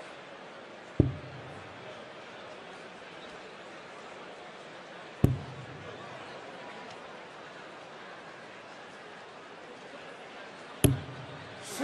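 Darts thud into a board one at a time.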